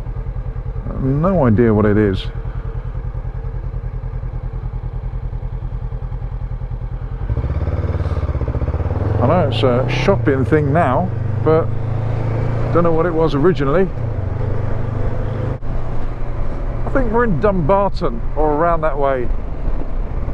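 A motorcycle engine revs up and climbs through the gears, its pitch rising again and again.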